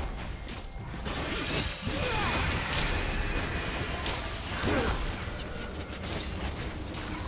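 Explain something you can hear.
Game characters strike each other with sharp hits.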